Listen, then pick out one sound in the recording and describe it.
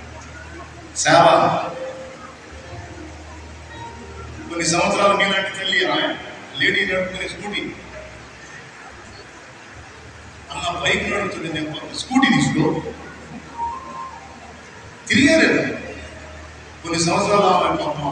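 A man preaches forcefully through a microphone over loudspeakers in a large echoing hall.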